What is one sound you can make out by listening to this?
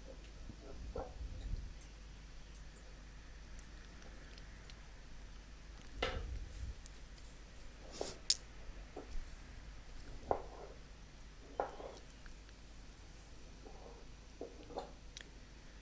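A chef's knife slices through zucchini and tomato onto a wooden cutting board.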